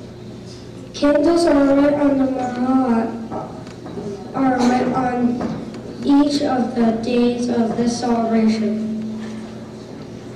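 A children's choir sings together in an echoing hall.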